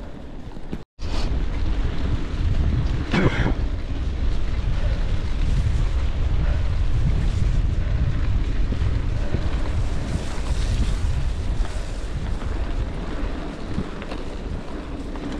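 Wind rumbles and buffets loudly outdoors.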